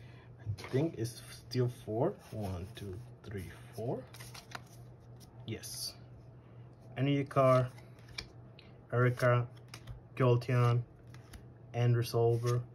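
Cards rustle and slide as hands shuffle through them.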